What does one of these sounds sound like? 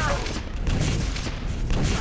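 A rocket explodes with a loud bang.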